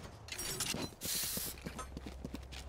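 A knife is drawn with a sharp metallic scrape.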